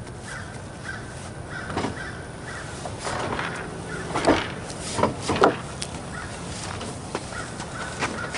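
A plastic bin thumps and scrapes as it is dragged and tipped.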